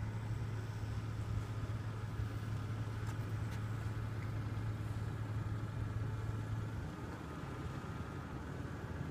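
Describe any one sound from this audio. Wind blows across the microphone outdoors with a low rumble.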